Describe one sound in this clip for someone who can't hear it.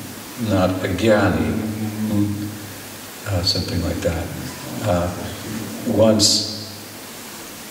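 A middle-aged man speaks calmly and expressively into a microphone close by.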